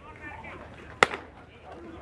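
A ball smacks into a catcher's mitt with a sharp pop.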